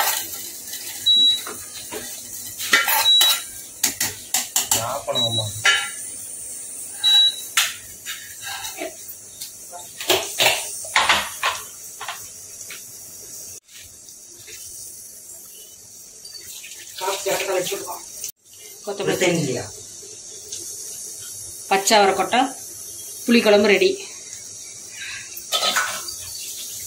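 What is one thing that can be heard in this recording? Thick liquid squelches as it is stirred in a pot.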